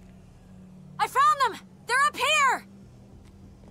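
A young woman exclaims close to a microphone.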